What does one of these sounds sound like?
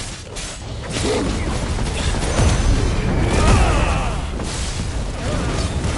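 Fiery explosions burst and roar with deep booms.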